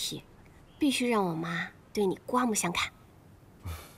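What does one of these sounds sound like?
A young woman speaks cheerfully on a phone, close by.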